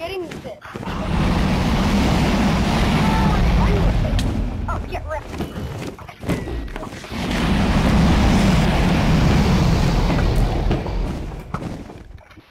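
A huge dragon roars loudly and long.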